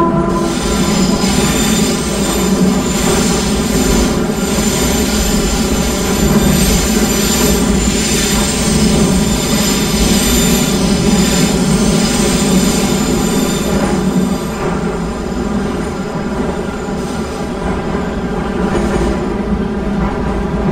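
A train rumbles steadily along the rails through an echoing tunnel.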